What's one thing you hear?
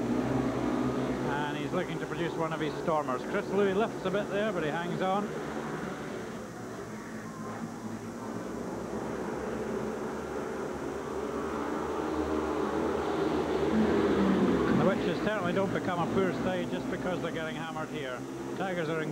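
Motorcycle engines roar as bikes race around a dirt track.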